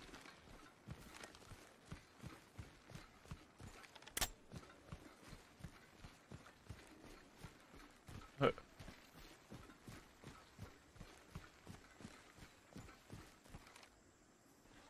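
Running footsteps thud quickly and steadily on grass.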